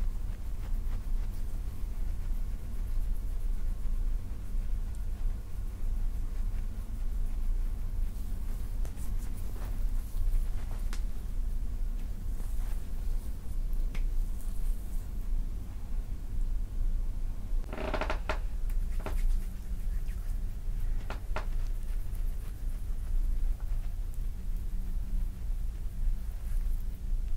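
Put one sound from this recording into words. Oiled hands rub and squelch softly on skin.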